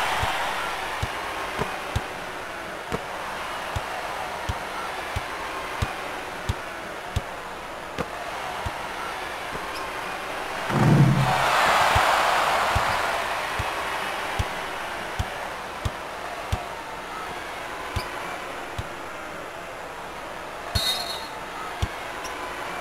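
A basketball bounces on a hard floor in a steady rhythm.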